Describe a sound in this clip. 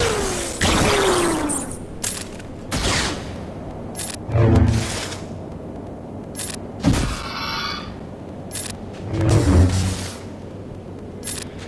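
Blaster shots zap and crackle.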